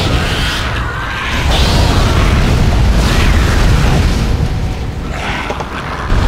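A gun fires with sharp blasts.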